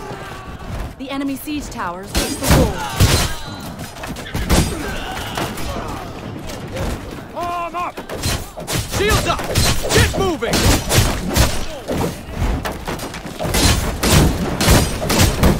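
A crowd of soldiers shouts and yells in combat.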